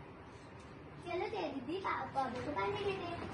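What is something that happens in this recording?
A young girl talks with animation nearby.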